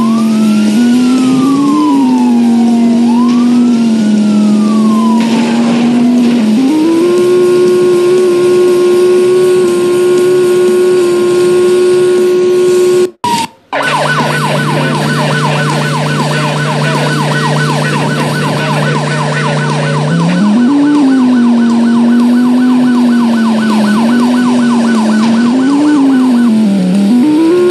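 A motorcycle engine hums and revs.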